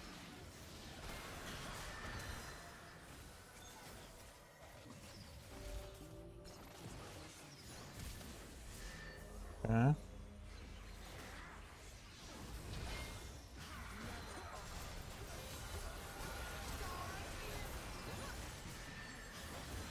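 Game spell and combat effects whoosh and crackle.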